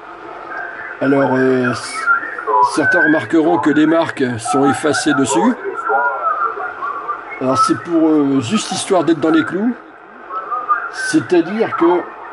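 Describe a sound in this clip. A man talks over a crackly radio loudspeaker.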